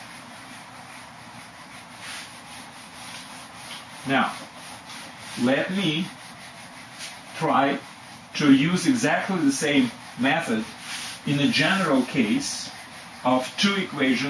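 A board eraser rubs across a whiteboard.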